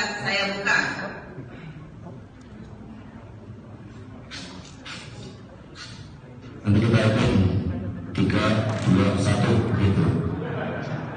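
A woman speaks steadily through loudspeakers in a large echoing hall.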